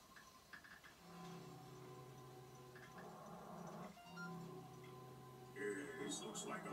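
Electronic game tones play from a television.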